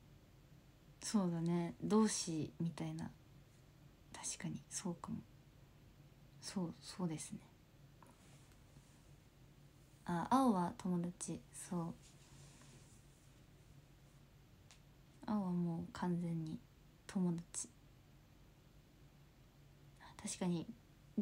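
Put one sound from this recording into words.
A young woman speaks calmly and softly close to a microphone, in short bursts with pauses.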